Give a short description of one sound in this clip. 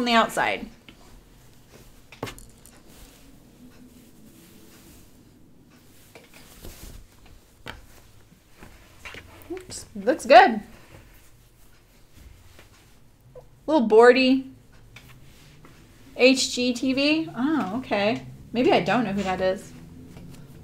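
An elderly woman talks calmly into a microphone.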